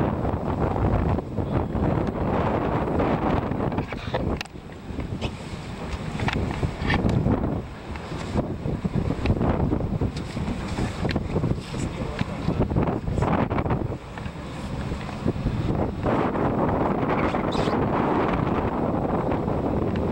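Choppy water slaps against a small boat.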